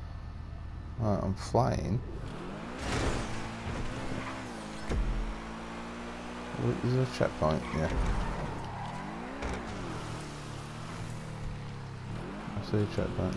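A sports car engine roars and revs, rising and falling in pitch.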